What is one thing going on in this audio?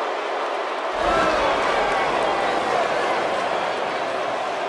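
A crowd roars louder as a wrestler climbs the ring post.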